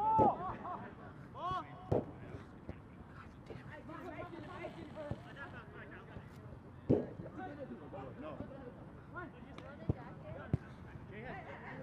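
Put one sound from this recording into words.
Young men shout and call to each other outdoors at a distance.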